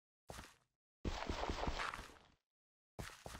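Blocks of stone and earth break with a gritty crumble.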